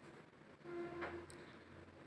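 Water pours into a pot.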